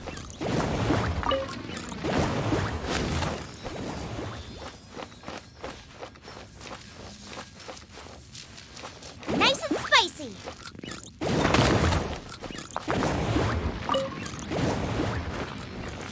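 Flames burst with a whoosh and crackle.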